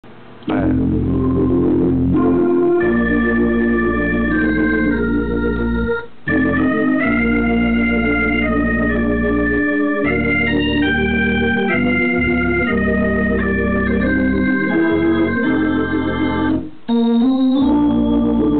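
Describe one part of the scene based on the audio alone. An organ plays sustained chords with a bass line, in short phrases with brief pauses.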